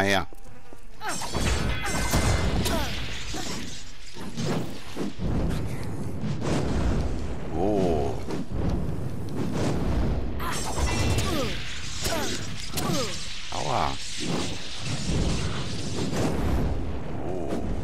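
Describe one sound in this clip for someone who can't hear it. Fiery spells burst and roar in a fight.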